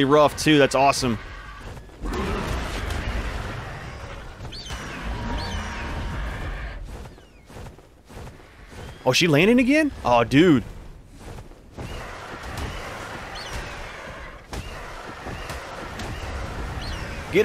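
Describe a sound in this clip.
Large wings beat and whoosh through the air.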